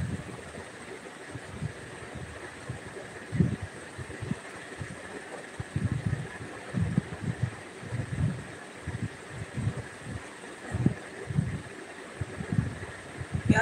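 A woman speaks quietly close by.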